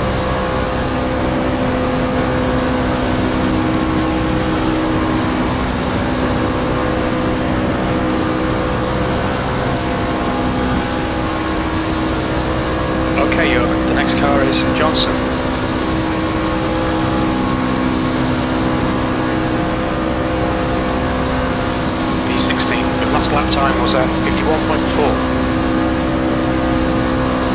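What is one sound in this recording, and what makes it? A racing car engine drones steadily at high speed.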